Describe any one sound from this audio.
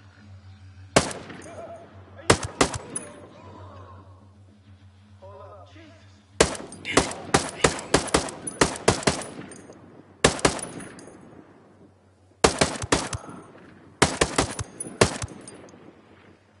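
Gunshots from a rifle crack loudly in quick bursts, with echoing tails.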